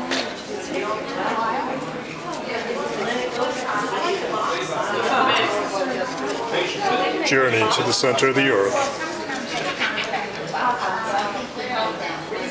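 Stiff paper rustles and flaps as it is folded.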